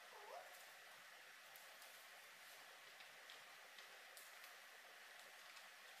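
Paper rustles faintly.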